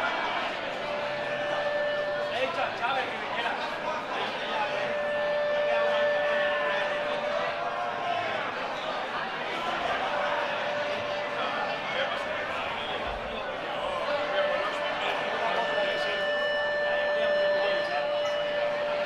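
A rock band plays loudly through speakers in a large echoing hall.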